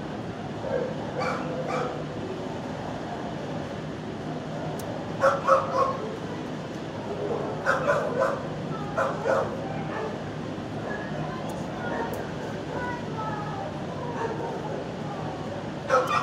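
A dog's claws tap on a hard floor.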